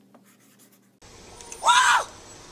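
A man shouts in surprise.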